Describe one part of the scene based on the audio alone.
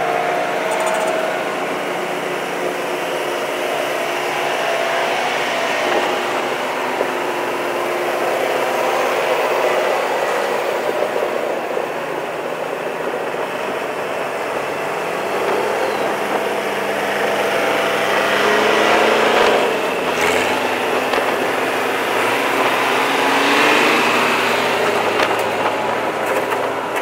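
Tractor engines rumble steadily as tractors drive past close by.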